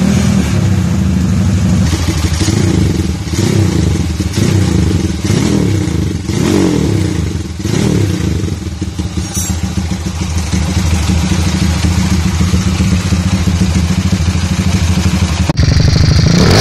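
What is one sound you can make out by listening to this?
A motorcycle engine idles loudly and revs in bursts.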